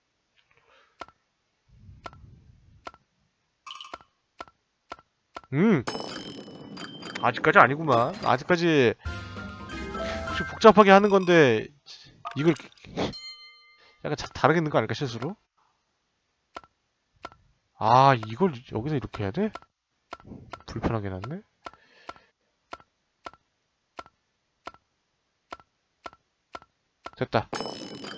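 Game tiles click softly as they slide into place.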